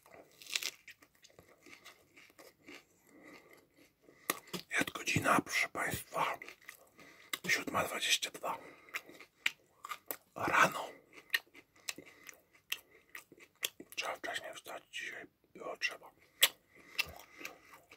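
A young man chews crunchy food with loud, wet smacking close up.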